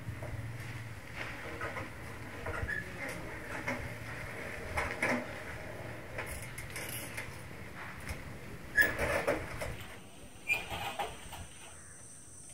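A bicycle rolls up and creaks to a stop.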